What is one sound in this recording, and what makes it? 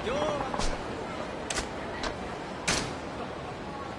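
Short electronic menu beeps sound.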